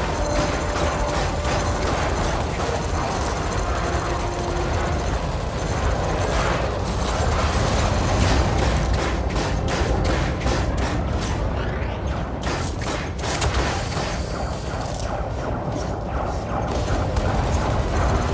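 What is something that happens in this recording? Laser weapons fire with a loud, sizzling hum.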